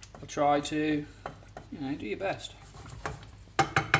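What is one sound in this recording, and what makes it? A wooden spoon scrapes and knocks against a frying pan.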